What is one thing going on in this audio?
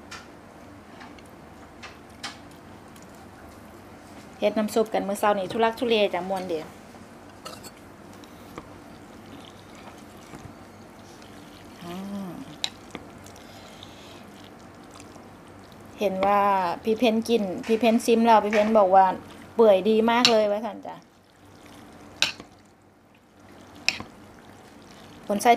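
Chopsticks and a fork clink against a glass bowl.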